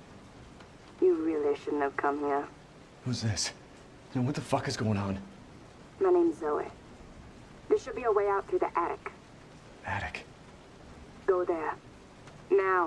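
A woman speaks urgently over a telephone line.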